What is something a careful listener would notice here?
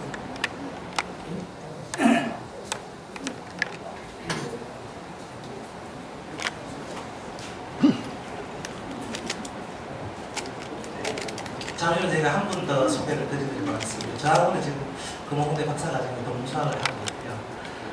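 People chatter quietly in a crowd.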